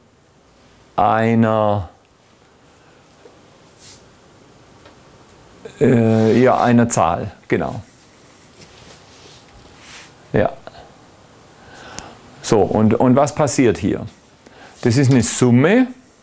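An older man lectures calmly, close by.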